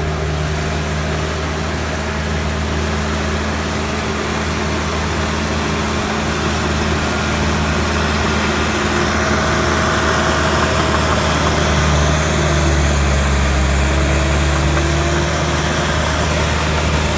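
A bulldozer's diesel engine rumbles steadily close by.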